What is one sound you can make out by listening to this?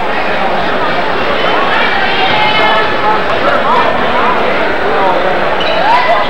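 A player bounces a basketball on a wooden floor.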